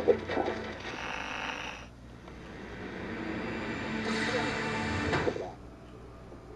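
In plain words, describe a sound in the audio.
A radio hisses and crackles with static.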